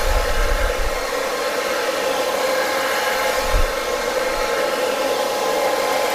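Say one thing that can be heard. A brush swishes through hair.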